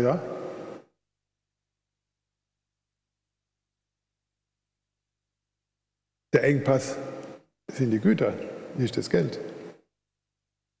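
An elderly man speaks calmly into a microphone, heard through loudspeakers in a large hall.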